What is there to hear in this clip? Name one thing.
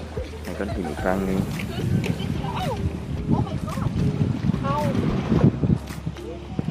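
Small waves lap gently against rocks.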